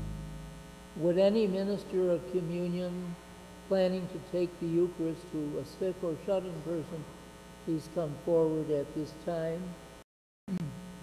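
An elderly man reads aloud calmly through a microphone.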